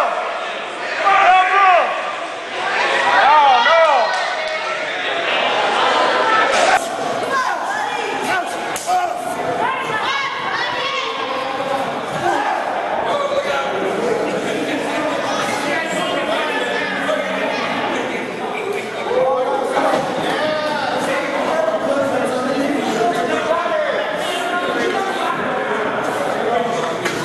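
A crowd cheers and shouts in a hall.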